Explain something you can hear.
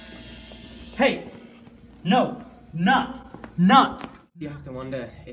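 A young man exclaims loudly nearby.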